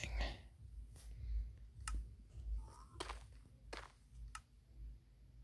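Short sharp clicks sound from a game's menu now and then.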